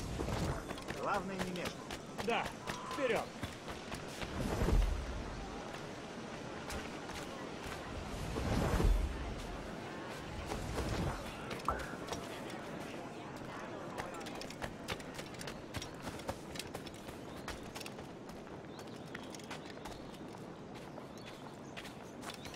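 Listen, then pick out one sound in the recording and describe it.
Quick footsteps patter on dirt and stone.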